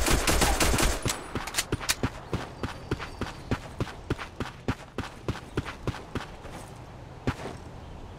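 Footsteps walk on stone.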